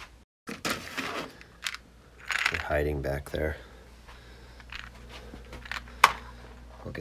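Small plastic bricks rattle inside a drawer.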